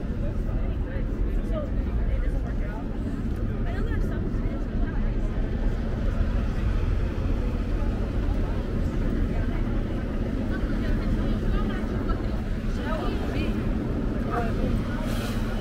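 Traffic and city noise rumble steadily outdoors.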